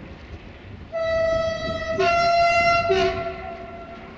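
A train horn sounds twice, loud and long.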